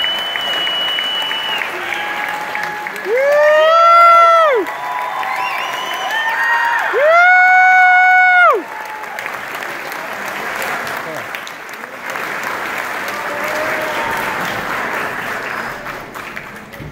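An audience murmurs.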